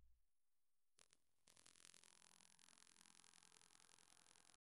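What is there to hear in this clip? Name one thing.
A vinyl record crackles softly in the run-out groove.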